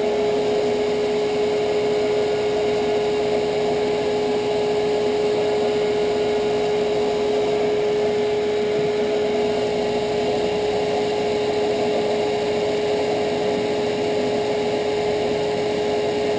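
An electric sanding machine hums steadily nearby.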